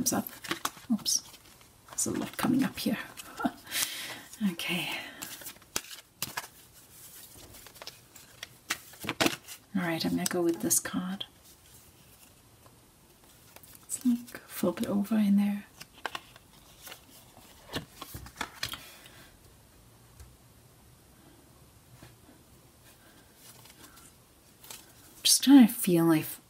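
Playing cards riffle and slide against each other as they are shuffled.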